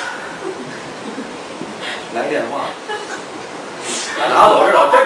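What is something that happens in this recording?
A young man talks cheerfully nearby.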